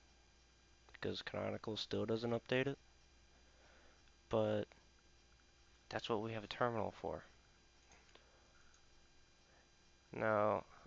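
A man talks calmly into a nearby microphone, in short phrases with pauses.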